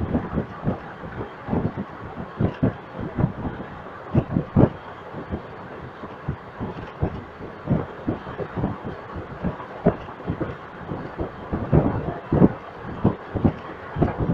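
Wind rushes past an open train door.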